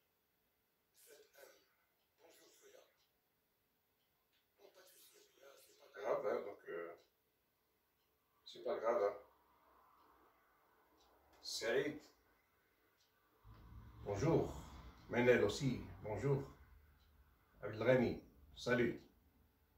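A man speaks calmly nearby, in short phrases with pauses.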